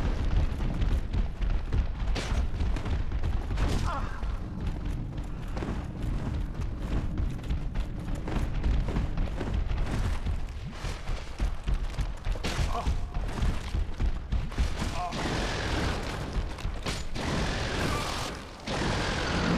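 Armoured footsteps clatter steadily on stone.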